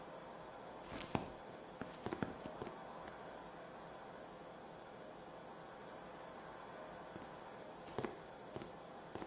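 Footsteps tread softly on ground.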